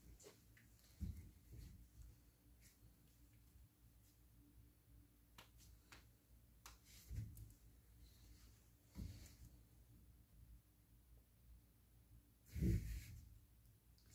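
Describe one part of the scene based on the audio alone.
Boots shift and thud softly on the floor.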